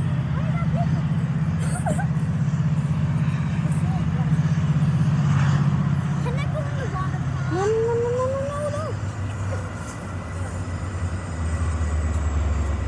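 A passenger train rumbles along the tracks in the distance.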